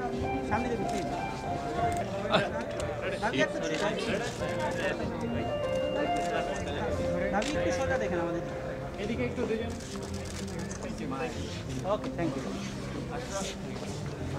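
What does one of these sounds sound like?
Men and women chatter over one another close by, in a busy crowd.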